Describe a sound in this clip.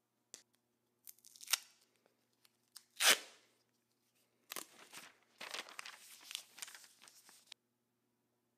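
Tape rips off a roll.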